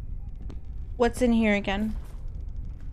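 A young woman exclaims with a rising, wavering voice into a close microphone.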